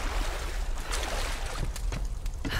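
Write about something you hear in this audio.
Water splashes.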